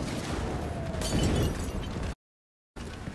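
Flames burst and roar with a whoosh.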